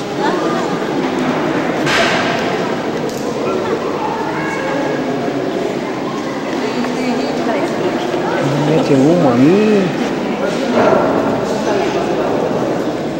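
A crowd of men and women chatters in an echoing hall.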